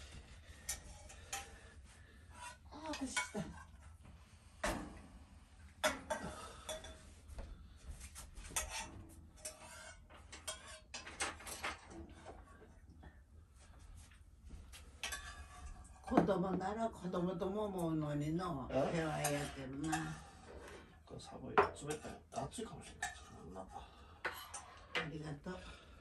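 Dishes clink on a table.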